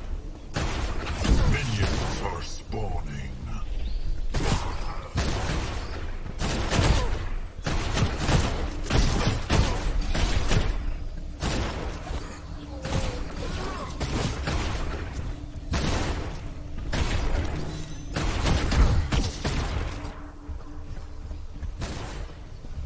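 Video game weapon shots fire in bursts.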